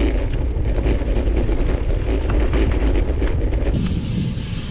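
Wind buffets against a microphone.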